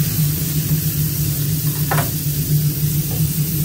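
A metal spatula scrapes against a griddle.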